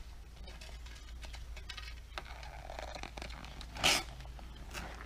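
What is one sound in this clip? Paper crinkles and rustles as it is peeled away.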